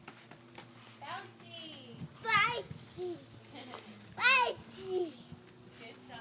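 A toddler squeals and babbles excitedly nearby.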